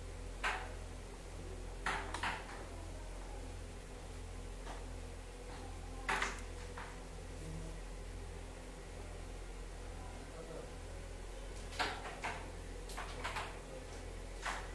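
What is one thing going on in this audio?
Carrom pieces click sharply against each other and the board's rim.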